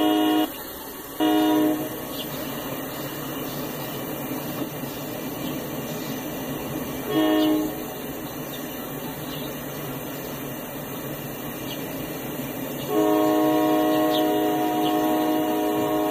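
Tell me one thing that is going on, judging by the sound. A train horn blows in several long blasts.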